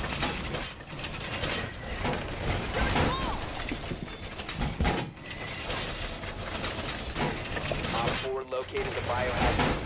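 A heavy metal panel clanks and scrapes into place.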